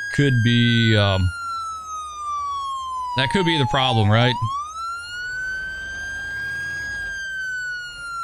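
An ambulance siren wails steadily, slowly falling and rising in pitch.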